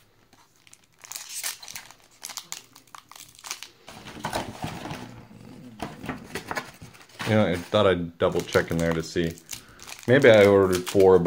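A foil wrapper crinkles and rustles.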